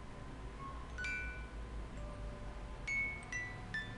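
A small music box plays slow, sparse chiming notes as its crank turns.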